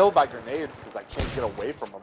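A rifle fires a few quick shots.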